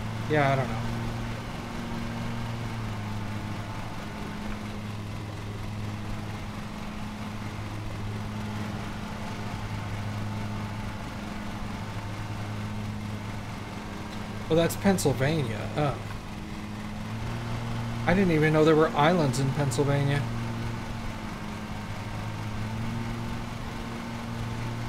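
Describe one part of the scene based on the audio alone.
A lawn mower engine hums steadily.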